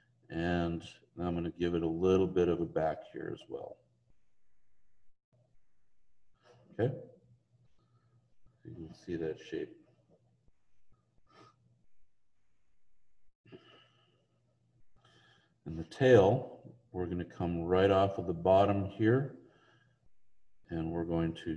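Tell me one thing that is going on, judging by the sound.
A man speaks calmly over an online call, pausing now and then.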